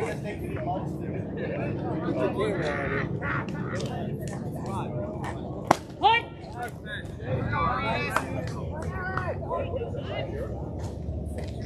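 Young players shout and cheer outdoors.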